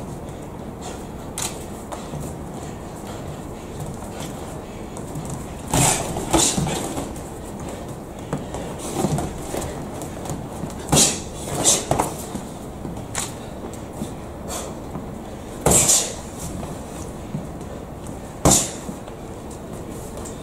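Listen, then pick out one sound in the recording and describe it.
Boxers' shoes squeak and shuffle on the ring canvas.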